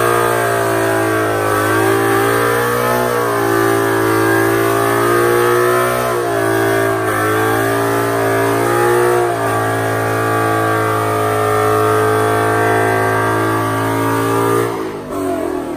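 Tyres squeal and screech as they spin on the road.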